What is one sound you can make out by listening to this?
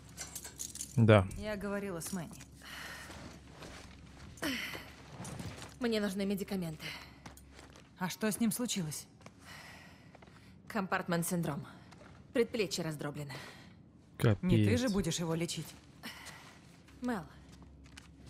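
A young woman speaks tensely, close by.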